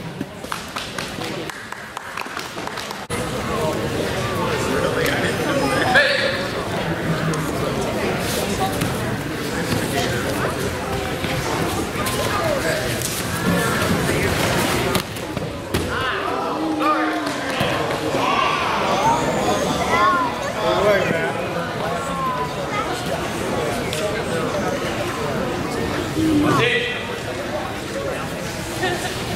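A crowd of spectators talks and shouts in a large echoing hall.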